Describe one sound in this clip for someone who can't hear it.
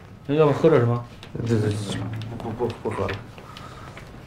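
A middle-aged man speaks casually nearby.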